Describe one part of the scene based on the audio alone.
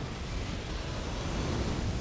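A fiery blast roars.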